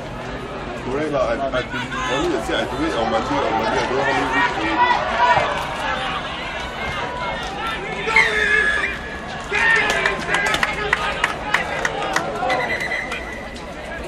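Spectators nearby cheer and shout loudly.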